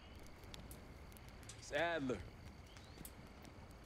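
A fire crackles.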